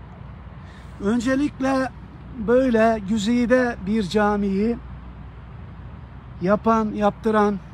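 An elderly man speaks close to the microphone with animation, outdoors.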